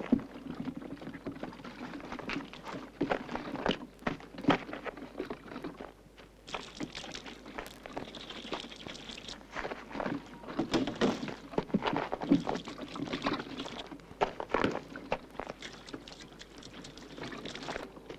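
Liquid splashes and sloshes out of plastic cans onto cars.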